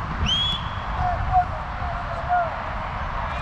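Young men call out to each other across an open field.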